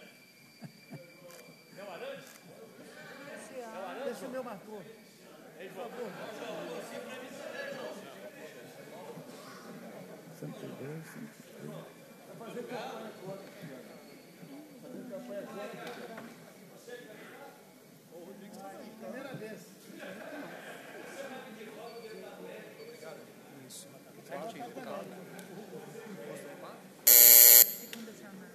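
Many men and women murmur and chat in a large echoing hall.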